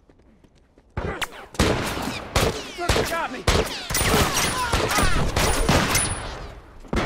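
Gunshots fire rapidly and loudly nearby.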